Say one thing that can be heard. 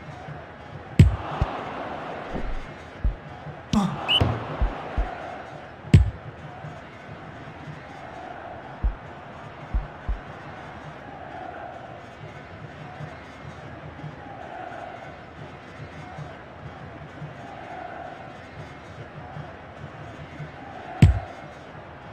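A video game football is kicked with a thump.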